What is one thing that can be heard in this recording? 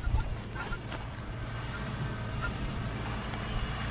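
A spade scrapes and crunches into soil.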